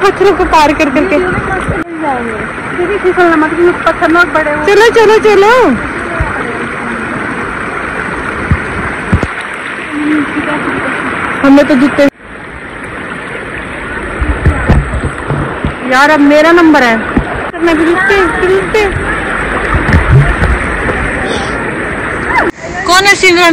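A shallow river rushes over stones.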